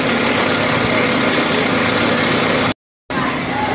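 A truck engine idles close by with a steady hum.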